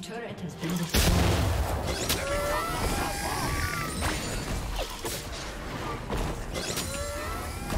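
Spell effects whoosh and zap in quick bursts.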